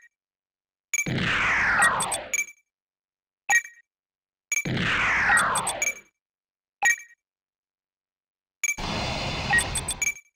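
A whooshing electronic sweep falls in pitch.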